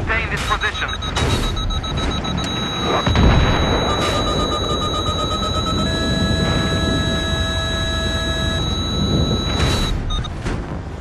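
A cannon fires heavy shells with booming blasts.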